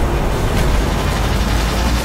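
Energy blasts crackle and zap.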